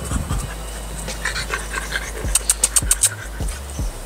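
A dog pants quickly up close.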